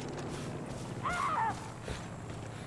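A dog whines briefly nearby.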